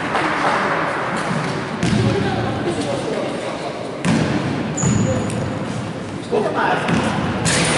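Players' shoes squeak and thud on a wooden court in a large echoing hall.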